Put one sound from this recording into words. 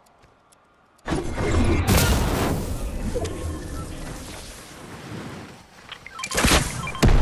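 Wind rushes loudly past a gliding figure.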